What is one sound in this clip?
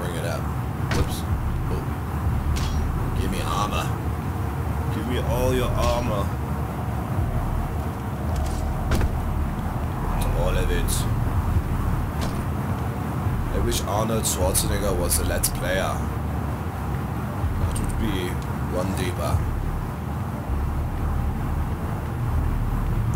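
Heavy footsteps clank on metal floors and stairs.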